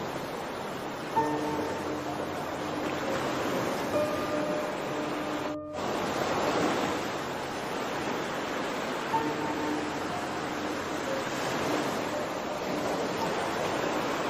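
Calm sea water laps gently.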